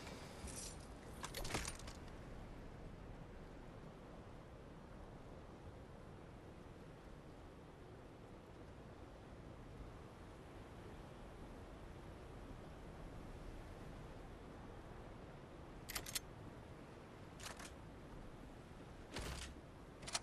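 Sharp game sound effects click now and then.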